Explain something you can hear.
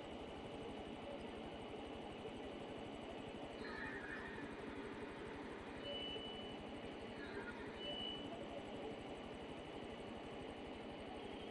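A helicopter's rotor blades thump rapidly and steadily.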